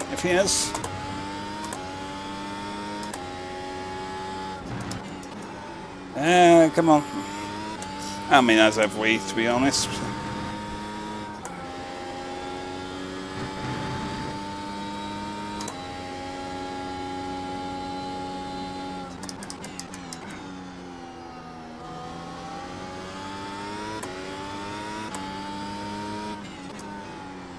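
A racing car engine roars and shifts up through the gears, then drops as it brakes.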